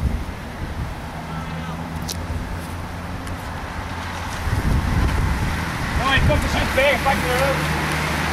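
A pack of bicycles whirs past on the road.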